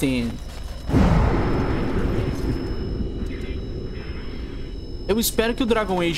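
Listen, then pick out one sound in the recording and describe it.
A magic spell bursts with a rushing whoosh.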